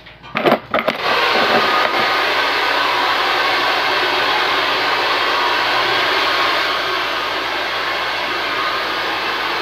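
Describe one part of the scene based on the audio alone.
A hair dryer blows with a loud, steady roar.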